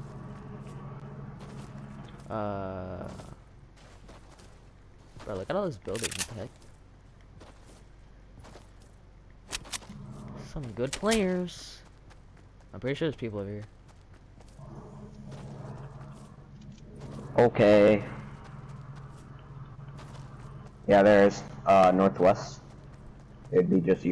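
Footsteps run quickly over grass and a path.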